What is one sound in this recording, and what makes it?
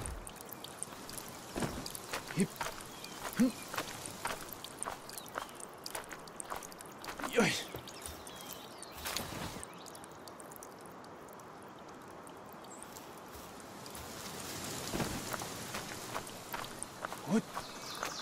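Hands and feet scrape and tap on rock during climbing.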